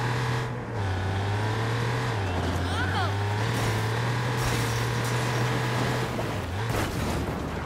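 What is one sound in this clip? A car engine hums steadily as a sports car drives.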